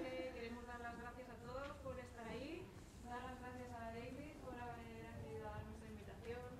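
A choir of young women sings together in a large echoing hall.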